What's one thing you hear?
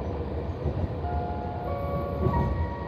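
Train brakes squeal with high, steady tones as the train slows.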